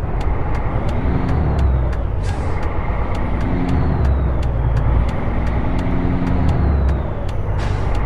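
A truck's turn signal ticks steadily.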